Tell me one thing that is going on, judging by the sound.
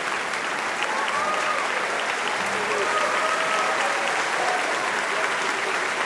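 A woman sings out in a large hall.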